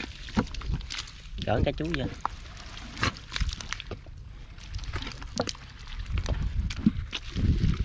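Wet mud squelches as a hand drags a fishing net.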